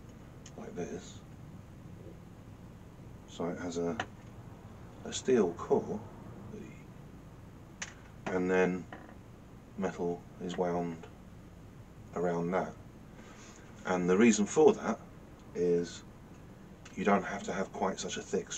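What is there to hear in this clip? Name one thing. A middle-aged man talks calmly and close by, in short phrases with pauses.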